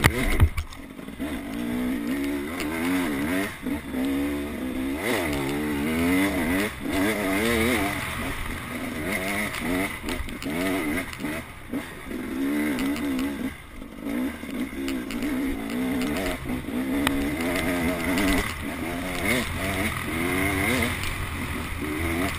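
A dirt bike engine revs up and down close by.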